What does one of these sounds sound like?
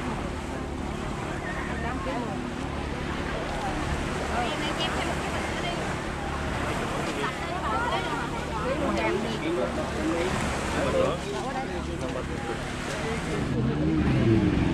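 A crowd of women and men chatter close by, outdoors.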